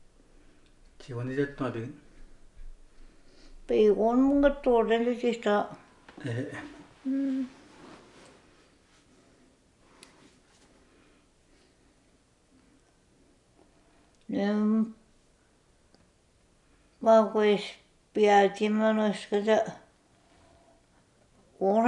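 An elderly woman speaks close by in short, halting phrases with pauses between them.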